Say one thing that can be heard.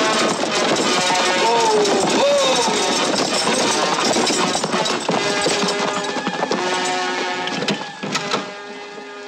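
Horses gallop and a stagecoach rattles along loudly.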